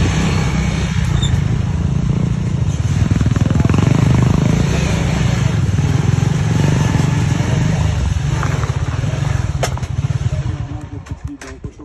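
A motorcycle engine rumbles up close.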